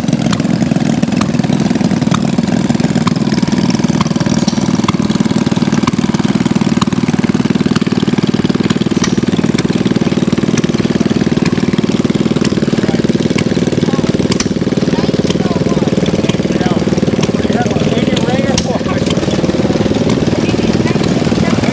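Small old engines chug and putter rapidly and steadily close by.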